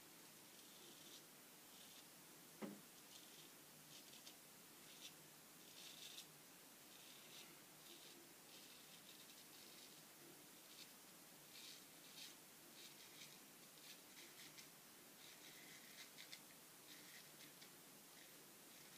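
A straight razor scrapes softly through stubble in short strokes, close by.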